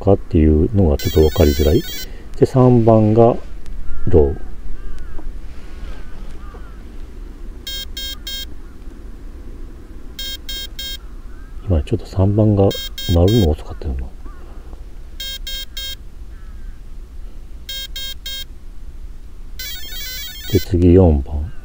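A handheld radio controller beeps in short bursts.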